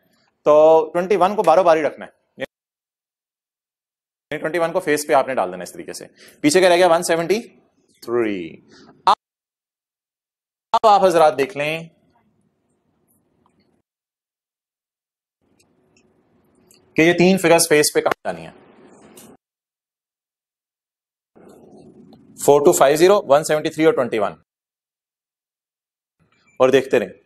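A man lectures in a calm, explaining voice through a microphone, with pauses.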